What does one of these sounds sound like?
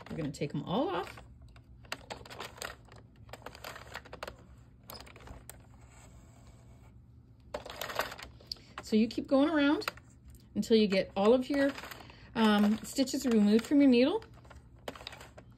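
Plastic pegs of a knitting loom click softly as yarn is worked over them.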